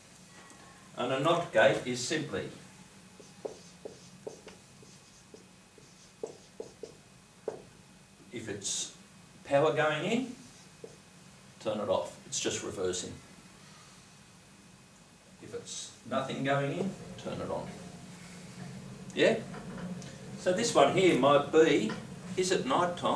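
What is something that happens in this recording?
A middle-aged man speaks calmly and clearly in a room, pausing between phrases.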